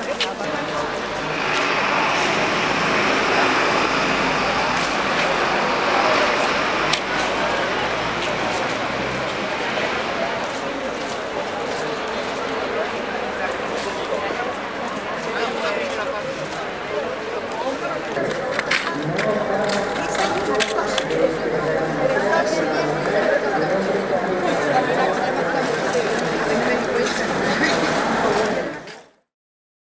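Many footsteps shuffle and tap on paving.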